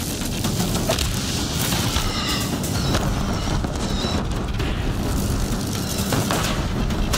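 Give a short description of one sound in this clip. Weapon blows strike with sharp impacts.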